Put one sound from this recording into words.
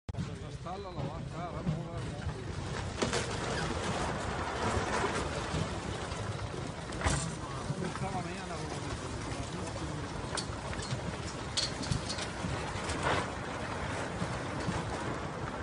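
A landslide of rock and mud rumbles and roars steadily close by.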